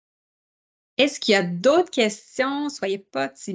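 A middle-aged woman talks with animation through an online call.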